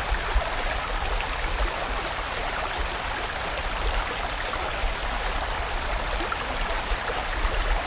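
A fast stream rushes and splashes over rocks.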